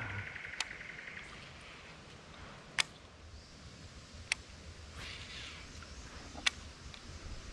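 A fishing reel clicks sharply a few times.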